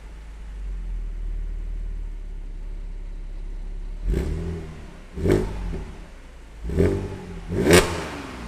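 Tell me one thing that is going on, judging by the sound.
A car engine idles with a deep, low rumble.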